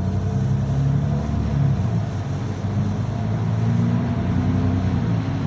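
Rain patters on the bus windows.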